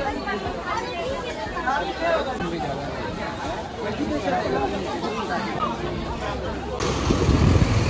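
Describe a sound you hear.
A crowd of men and women chatter close by.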